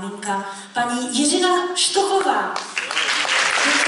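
A woman sings into a microphone, heard through loudspeakers.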